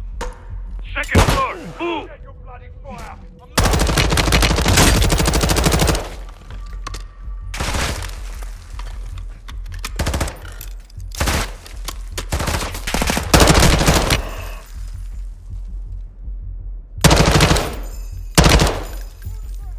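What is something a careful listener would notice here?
A rifle fires rapid bursts of shots, echoing indoors.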